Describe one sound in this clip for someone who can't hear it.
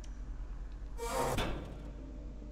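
An elevator door slides open with a soft whoosh.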